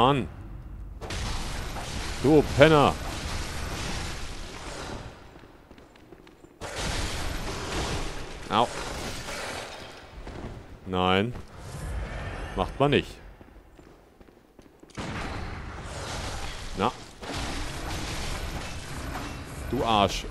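A blade slashes and strikes flesh with heavy thuds.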